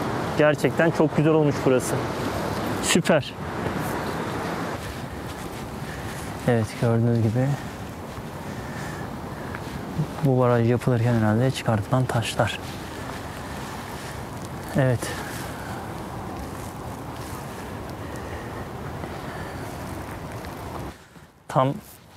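A young man talks calmly close to a microphone.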